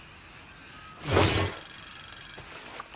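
A wooden crate lid creaks open.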